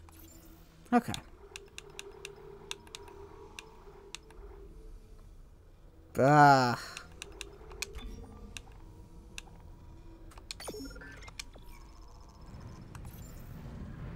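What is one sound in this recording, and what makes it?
Short electronic menu clicks and beeps sound now and then.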